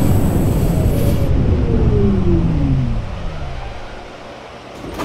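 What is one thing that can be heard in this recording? A train's motor whines and falls in pitch as the train slows.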